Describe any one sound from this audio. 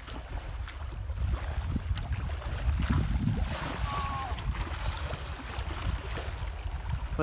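Water laps against a rocky shore.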